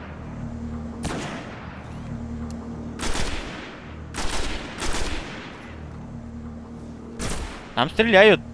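Rifle shots crack out one at a time.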